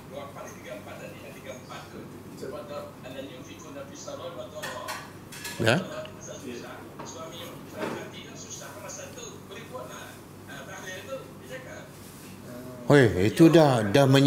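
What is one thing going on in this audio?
A middle-aged man speaks calmly and steadily into a close microphone.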